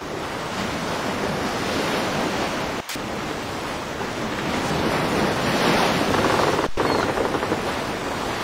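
Waves wash and splash against a sailing ship's hull.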